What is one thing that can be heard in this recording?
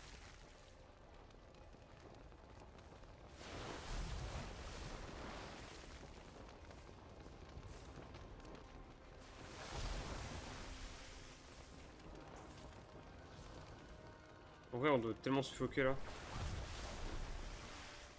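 Magic spells whoosh and rumble in a video game.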